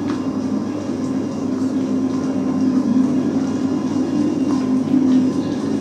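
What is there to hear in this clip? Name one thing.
A large machine hums steadily.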